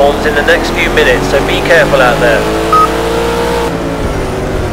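A sports racing car's engine roars at high speed.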